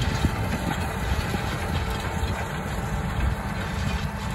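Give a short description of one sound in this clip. A tractor engine hums at a distance.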